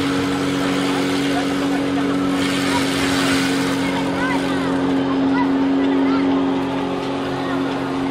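A personal watercraft engine drones steadily under load.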